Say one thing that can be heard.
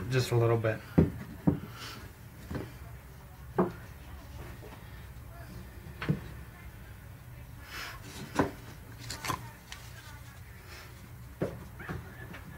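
Light objects knock and tap on a surface.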